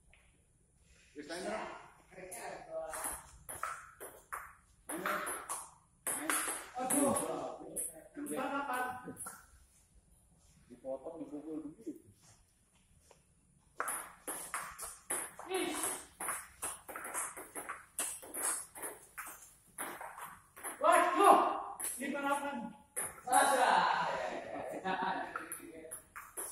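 A ping-pong ball clicks back and forth on paddles and a table.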